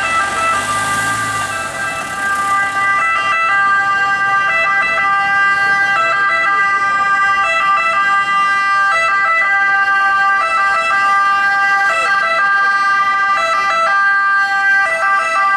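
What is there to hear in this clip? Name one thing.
An ambulance engine hums as the vehicle drives slowly past.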